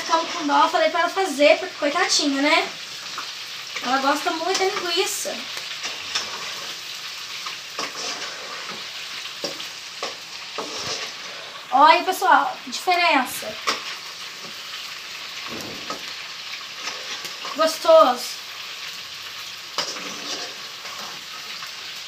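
A metal spoon scrapes and clinks in a frying pan.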